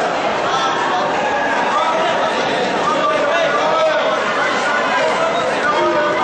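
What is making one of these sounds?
A crowd of spectators chatters and calls out throughout a large echoing hall.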